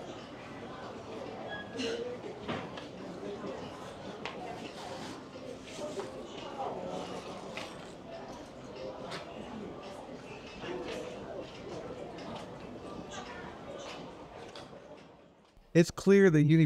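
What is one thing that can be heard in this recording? A crowd of shoppers murmurs softly nearby.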